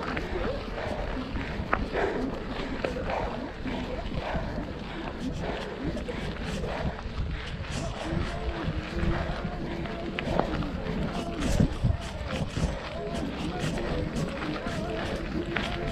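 Footsteps crunch on a gravel path.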